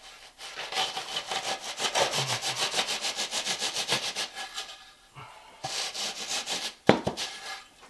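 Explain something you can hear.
A board scrapes back and forth across damp sand mortar in quick strokes.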